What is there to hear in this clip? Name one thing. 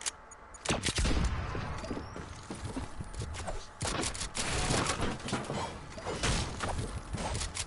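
A pickaxe strikes wood in quick repeated blows.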